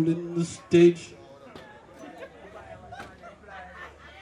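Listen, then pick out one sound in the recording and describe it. A young man talks into a microphone, heard through loudspeakers.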